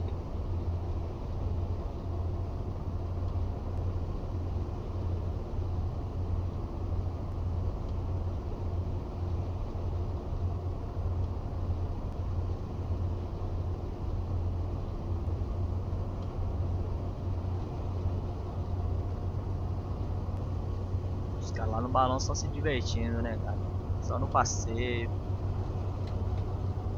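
Tyres roll along a road with a steady rumble.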